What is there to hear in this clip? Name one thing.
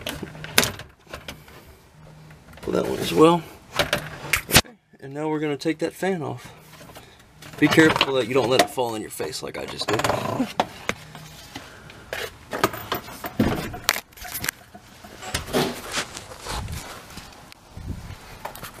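Plastic panels click and knock as hands handle them up close.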